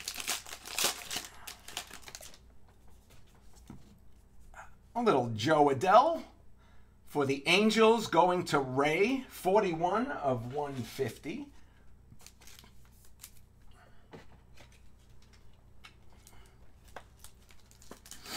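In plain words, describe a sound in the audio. Trading cards and a foil pack rustle and crinkle as they are handled.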